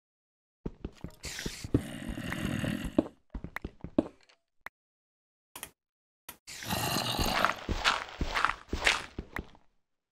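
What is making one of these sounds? A pickaxe chips and breaks blocks of stone and dirt.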